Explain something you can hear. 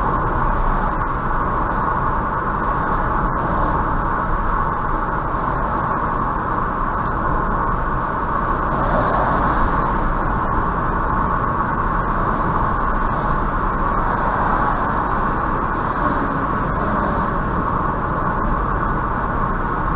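Tyres hum steadily on the road from inside a moving car.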